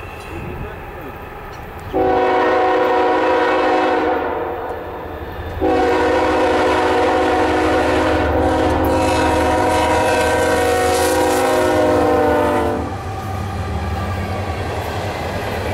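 A diesel locomotive rumbles closer and roars past.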